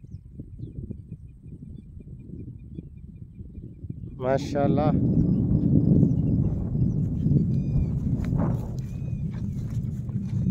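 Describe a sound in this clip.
Wind blows outdoors with a low rumble.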